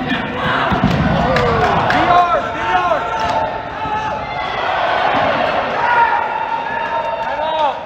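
Sneakers squeak sharply on a hard gym floor in a large echoing hall.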